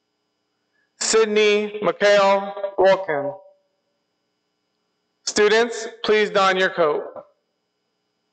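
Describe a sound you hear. A woman reads out calmly through a microphone in a large hall.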